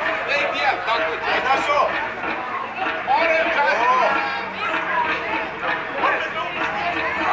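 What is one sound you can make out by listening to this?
Young children shout and squeal excitedly nearby, outdoors.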